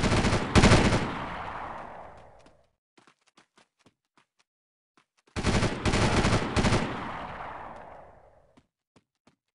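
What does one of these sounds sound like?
A machine gun fires in short bursts that echo away.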